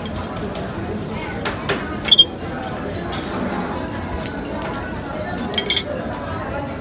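A metal fork clinks against a plate.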